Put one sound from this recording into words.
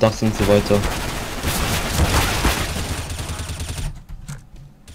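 Rapid gunfire rattles loudly in a tunnel.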